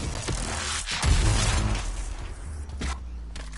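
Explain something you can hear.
A large explosion booms with a crackle of electricity.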